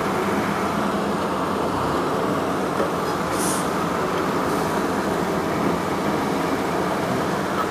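Wind blows steadily and rumbles across open ground.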